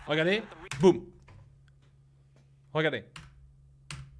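A man speaks with animation in short bursts, close to a microphone.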